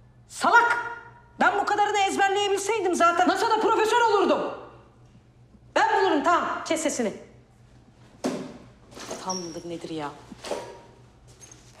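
A young woman shouts angrily close to a microphone.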